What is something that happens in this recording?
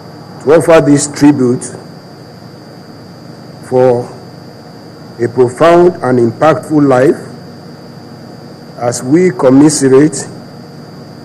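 A middle-aged man speaks slowly and solemnly into a microphone, with pauses.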